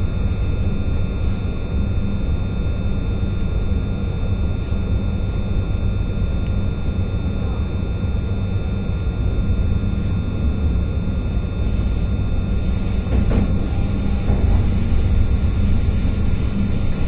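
A train hums with a steady high whine.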